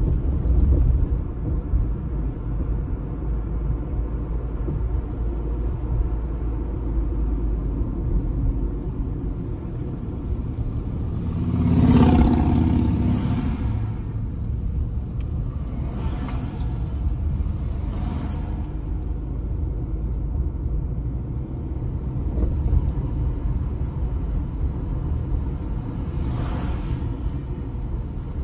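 A car engine hums steadily with road rumble from inside a moving car.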